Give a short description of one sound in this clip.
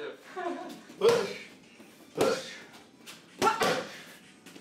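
Gloved punches smack hard into focus pads.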